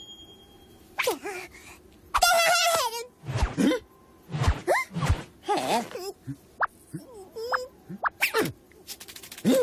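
A small cartoon creature shrieks and squeals in a high, excited voice.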